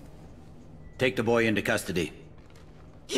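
A man gives an order calmly.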